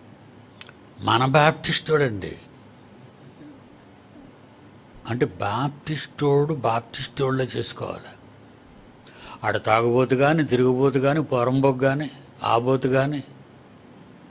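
An elderly man speaks calmly and deliberately into a close microphone, pausing between phrases.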